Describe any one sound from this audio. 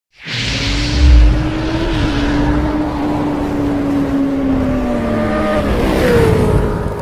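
A motorcycle engine roars and revs.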